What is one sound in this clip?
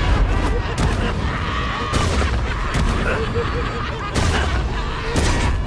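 Punches and kicks thud hard in a fast brawl.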